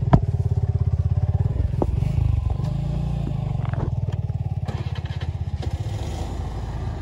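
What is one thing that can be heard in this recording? A motorcycle engine rumbles nearby.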